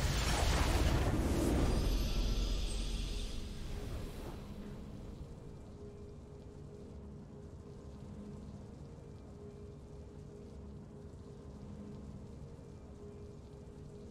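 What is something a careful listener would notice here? A triumphant fanfare swells and then fades to quiet music.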